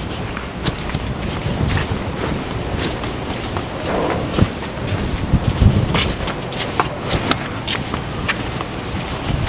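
Footsteps crunch and scuff on a dirt yard.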